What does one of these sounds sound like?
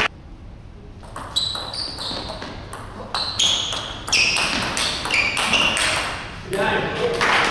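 A table tennis ball clicks back and forth off paddles and a table in an echoing hall.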